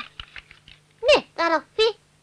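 A boy laughs.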